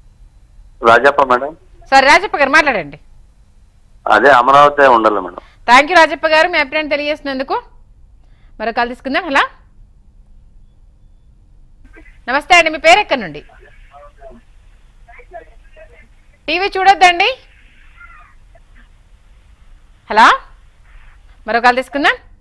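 A woman reads out the news in a clear, steady voice through a microphone.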